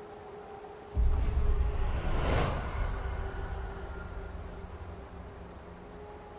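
A deep boom hits suddenly and rumbles away slowly.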